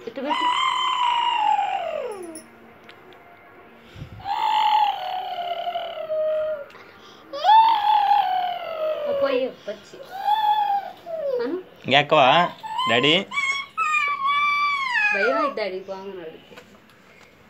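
A small boy chatters and squeals in a high voice close by.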